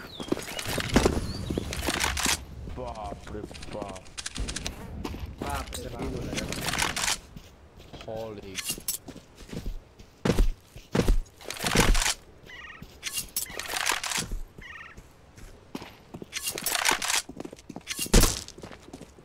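A rifle fires loud single shots.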